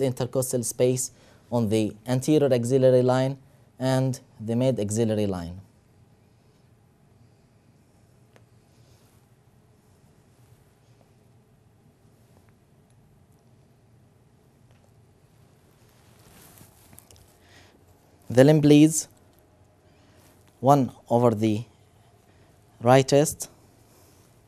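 A man speaks calmly and clearly, close by, in short phrases with long pauses.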